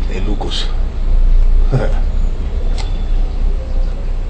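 A man sips from a mug close to a microphone.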